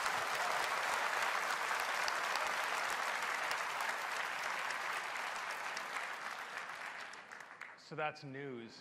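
A large audience applauds loudly and gradually dies down.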